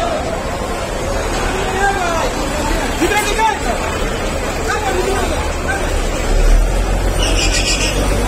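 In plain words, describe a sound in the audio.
A truck engine rumbles close by.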